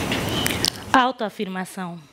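A young woman speaks into a microphone, calmly and clearly.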